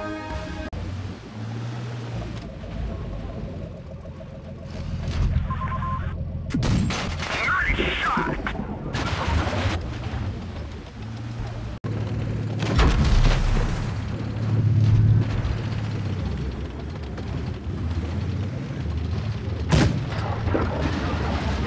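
A tank engine rumbles low and steady.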